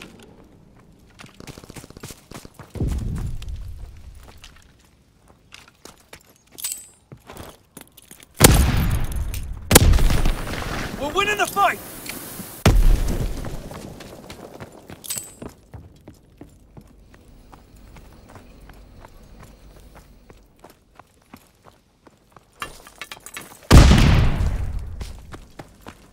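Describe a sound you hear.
Footsteps run quickly over ground and wooden floors.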